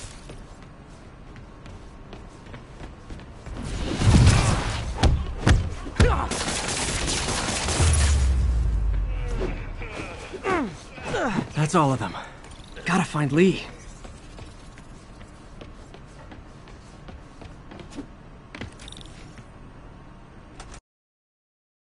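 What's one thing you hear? Footsteps pad along a hard floor.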